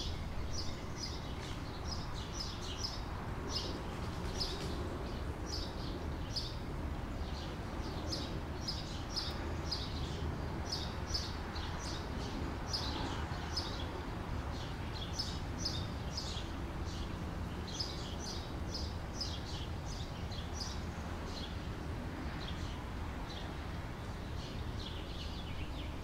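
Sparrows chirp repeatedly nearby.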